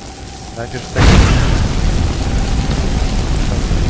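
A blast of fire roars loudly.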